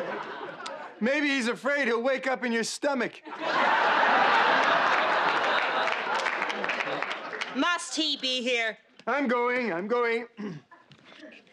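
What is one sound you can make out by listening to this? A man speaks with exaggerated, mocking emotion.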